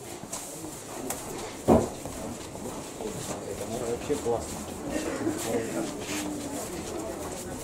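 A cardboard box rustles and bumps as a man carries it.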